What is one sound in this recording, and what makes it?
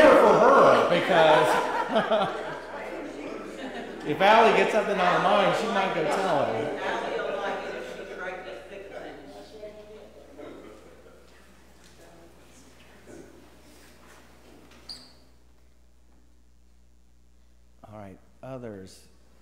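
A man speaks through a microphone in an echoing hall, calmly and with animation.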